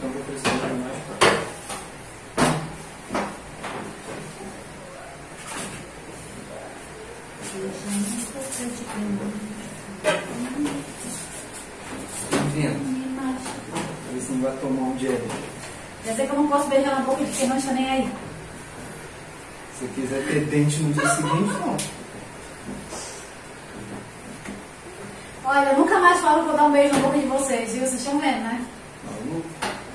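Hands knead dough and thump it on a counter.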